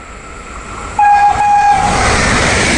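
An electric high-speed train rushes through a station at speed.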